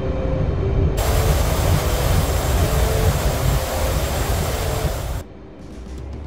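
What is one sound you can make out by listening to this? A jet engine roars loudly as a fighter flies past.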